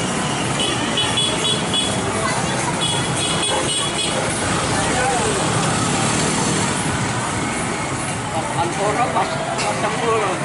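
Motorbike engines hum past on a street.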